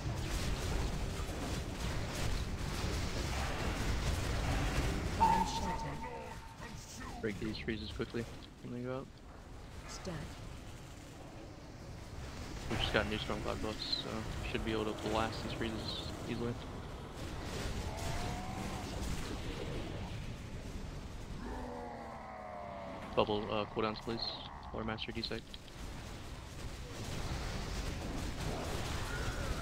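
Game spells crackle and boom in a busy battle.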